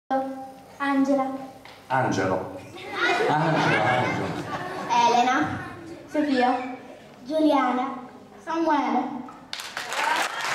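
Children sing together through a loudspeaker in a hall.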